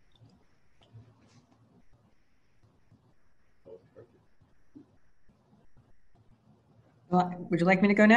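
A man speaks calmly and faintly over an online call.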